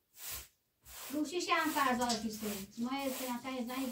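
A woman sings nearby.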